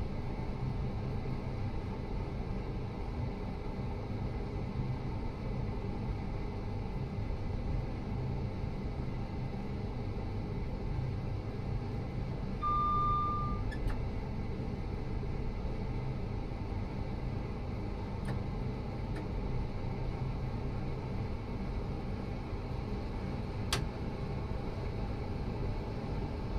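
A train rumbles steadily along the rails, heard from inside the cab.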